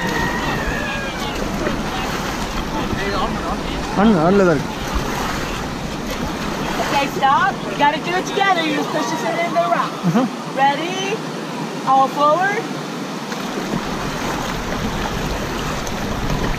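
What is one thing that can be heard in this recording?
Whitewater rapids roar and rush loudly.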